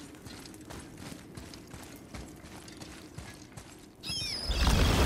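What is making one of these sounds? Heavy footsteps tread on a stone floor.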